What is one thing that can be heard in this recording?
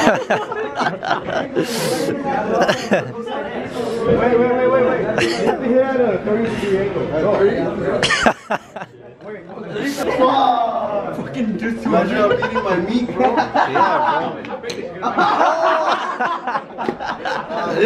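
Several young men talk and laugh loudly close by, outdoors.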